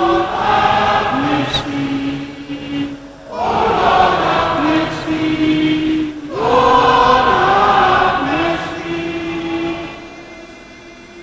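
A congregation sings a hymn together in an echoing hall.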